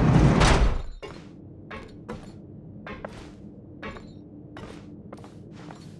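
Footsteps patter quickly on a wooden floor.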